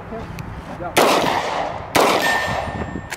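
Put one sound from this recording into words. A gun fires two loud shots outdoors, echoing briefly.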